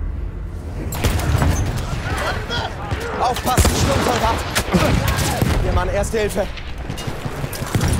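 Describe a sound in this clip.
Gunshots crack and boom in a battle.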